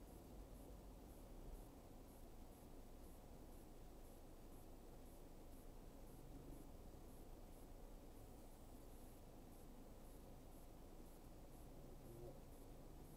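Traffic rumbles all around on a busy road.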